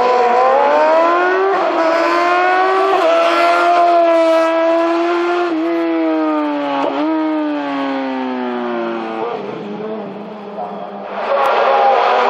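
A race car engine roars loudly and revs up and down through gear changes.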